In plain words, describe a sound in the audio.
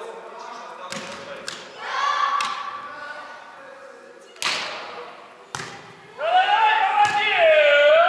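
A volleyball is struck with sharp slaps that echo in a large hall.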